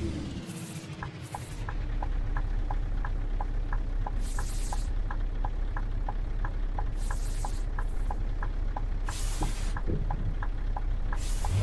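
A turn signal ticks at an even pace.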